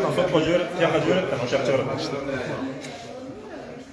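An older man laughs.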